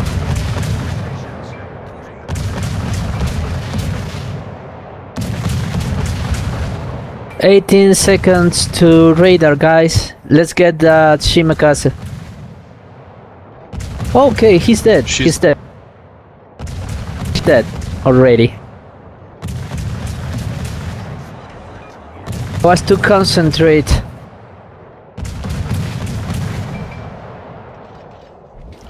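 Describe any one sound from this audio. Heavy naval guns fire in loud booming salvos every few seconds.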